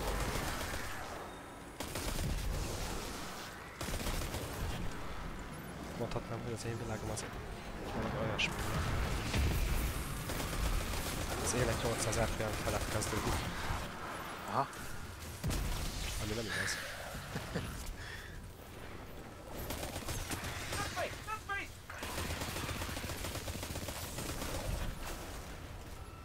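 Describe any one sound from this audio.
Video game gunfire rattles in rapid bursts.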